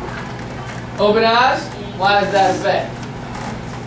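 Children call out eagerly in chorus.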